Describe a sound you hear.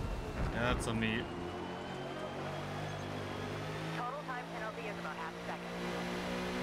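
Racing tyres squeal as a car slides.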